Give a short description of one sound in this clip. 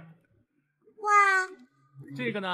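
A young girl exclaims in surprise.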